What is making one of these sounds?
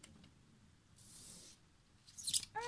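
A card slides softly onto a table.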